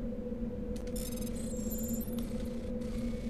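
Electronic beeps chirp in quick succession.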